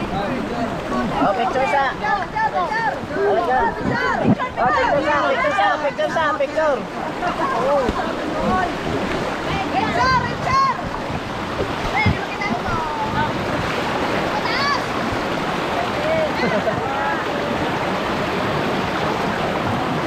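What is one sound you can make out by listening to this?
Young men shout and cheer excitedly nearby.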